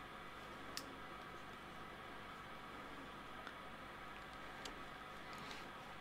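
A marker cap clicks softly.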